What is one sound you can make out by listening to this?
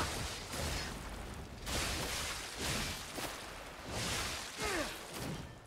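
Metal weapons clash with sharp ringing hits.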